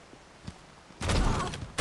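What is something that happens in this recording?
Gunfire rattles in a quick burst.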